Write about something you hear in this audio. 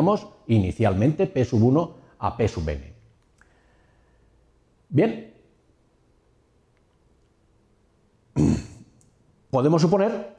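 A middle-aged man lectures calmly into a close microphone, with pauses.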